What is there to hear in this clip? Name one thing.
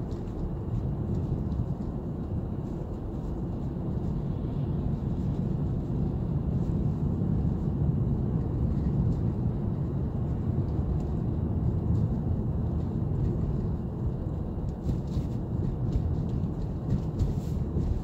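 Tyres rumble low and steady on a snowy road.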